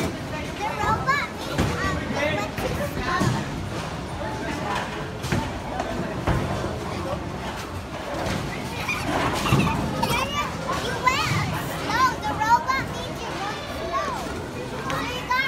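A young girl talks with animation close by, in a large echoing hall.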